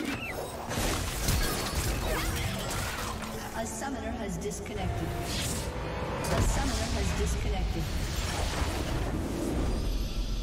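Magic blasts whoosh and crackle in a fast fight.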